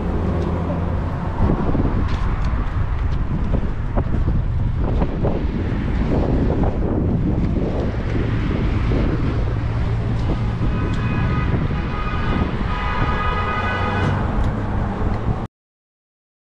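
Wind blusters loudly outdoors.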